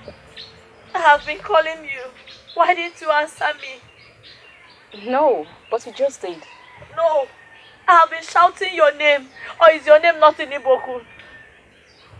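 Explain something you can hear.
A woman speaks with strong emotion, close by.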